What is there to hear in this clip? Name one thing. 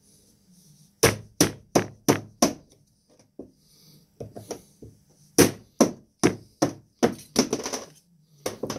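Metal battery cells click and clack against each other as hands handle them.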